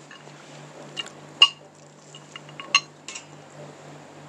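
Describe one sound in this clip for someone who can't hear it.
Metal spoons clink against a plate.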